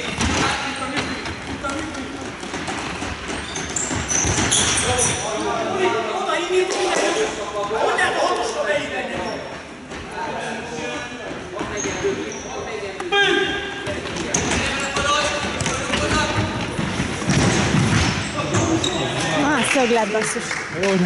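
Players shout to one another across a large echoing hall.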